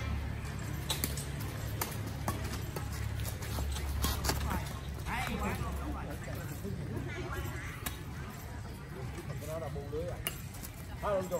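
Badminton rackets strike a shuttlecock outdoors.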